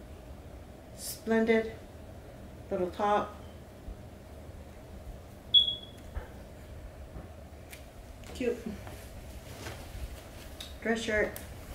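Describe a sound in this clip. A woman speaks calmly close by in short phrases.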